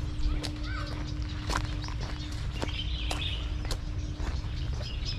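Footsteps tread steadily on a stone path.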